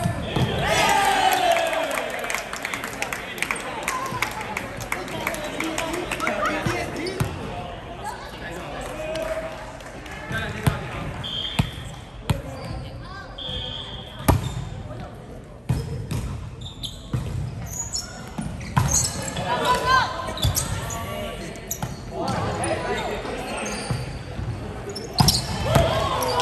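Young men and women call out and shout during play.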